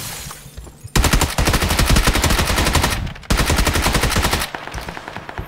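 A gun fires rapid bursts of loud shots.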